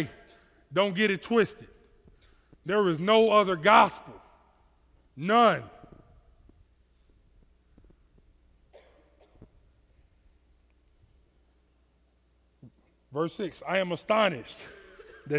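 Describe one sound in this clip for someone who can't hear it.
A man speaks with expression into a headset microphone, in bursts with long pauses.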